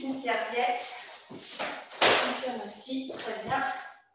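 A rubber mat flaps and slaps onto a wooden floor.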